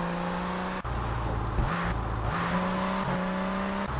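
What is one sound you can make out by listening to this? Tyres screech on pavement.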